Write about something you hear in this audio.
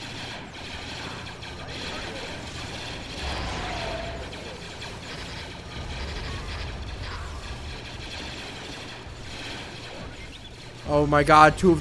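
Gunfire and small explosions crackle in a distant battle.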